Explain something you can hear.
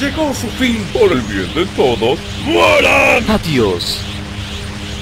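A man laughs menacingly.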